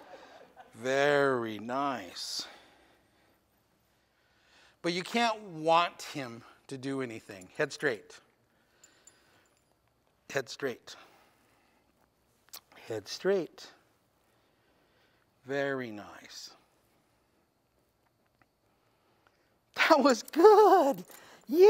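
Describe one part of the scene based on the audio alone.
An older man speaks calmly and gently, close by, with pauses.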